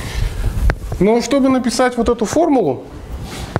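A man speaks with animation, heard close.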